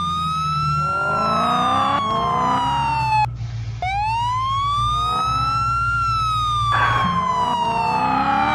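A car engine revs hard as it speeds up.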